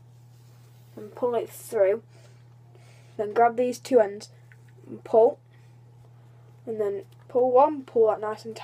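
A boy speaks calmly and close by, in short bursts.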